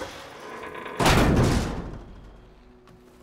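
A heavy metal door slides open with a loud whoosh.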